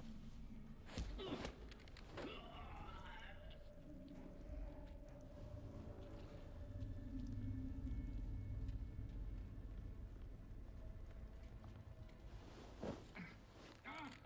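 Blows and thuds land in a scuffle.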